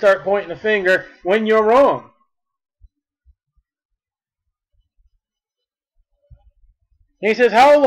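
A man speaks calmly and closely, reading out in a deep voice.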